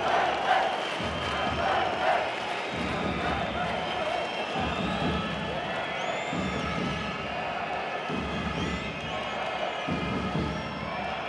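A large crowd cheers and chants steadily in a big echoing arena.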